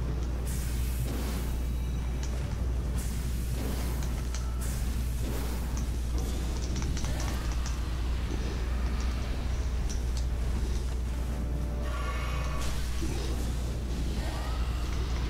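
A sword whooshes through the air in repeated swings.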